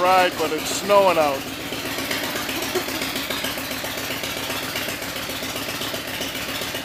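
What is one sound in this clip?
A motorcycle engine idles with a steady, pulsing rumble.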